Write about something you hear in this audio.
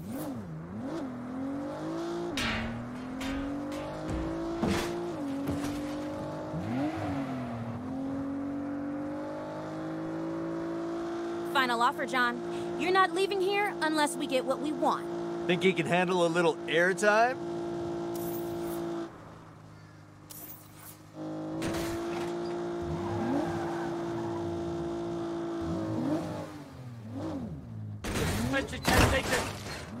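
A car engine hums and revs steadily.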